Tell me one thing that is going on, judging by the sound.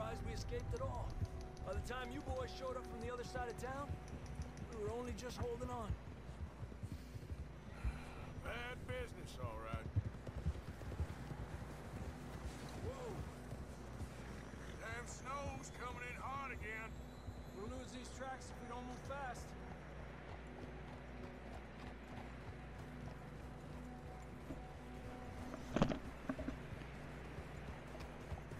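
Horses' hooves crunch through snow.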